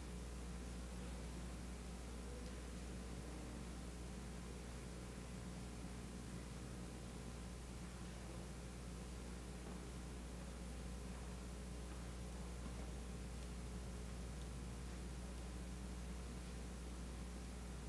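Footsteps cross a hard floor in a large hall.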